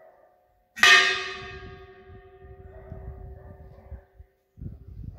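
A church bell strikes once close by and slowly rings out.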